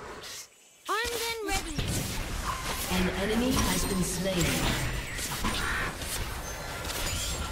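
Magic spells whoosh and crackle in a close fight.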